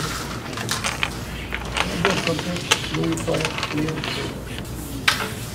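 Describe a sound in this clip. Small game pieces clatter and click as they are gathered on a wooden board.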